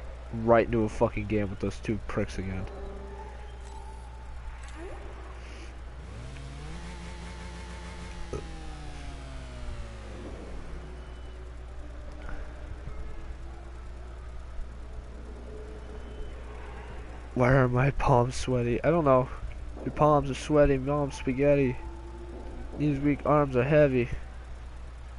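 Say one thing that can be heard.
A car engine hums steadily at idle.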